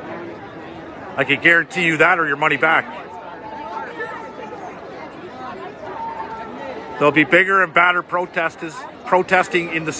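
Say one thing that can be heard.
A crowd murmurs and talks in the background.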